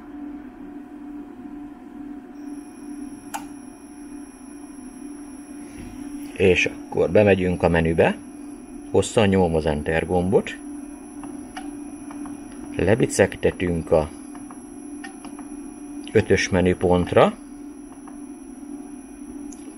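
An electrical device hums steadily.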